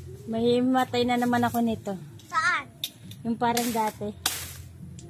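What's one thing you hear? A young girl talks nearby.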